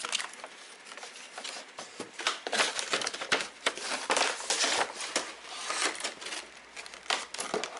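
A cardboard box taps and scrapes against a table.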